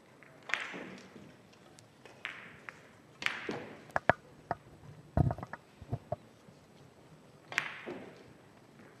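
Billiard balls click sharply against each other and thud into the cushions, in a large echoing hall.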